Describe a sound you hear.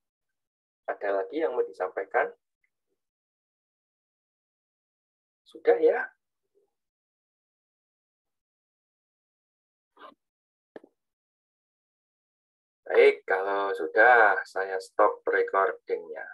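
A man speaks with animation over an online call, pausing now and then.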